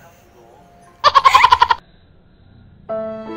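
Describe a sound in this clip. Two young women laugh loudly.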